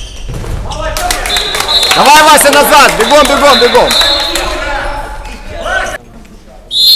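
A crowd of spectators cheers and shouts loudly.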